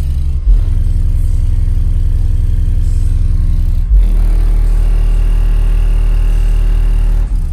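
Subwoofers boom with loud, deep, throbbing bass.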